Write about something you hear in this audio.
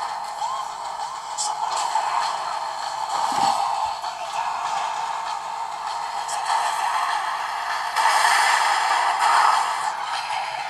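Racing car engines roar and whine from a small phone speaker.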